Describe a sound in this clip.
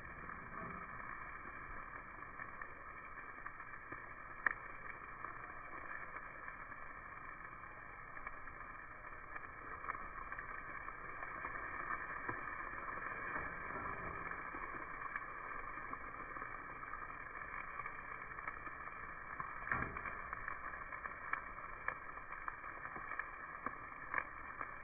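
Meat sizzles steadily on a hot grill.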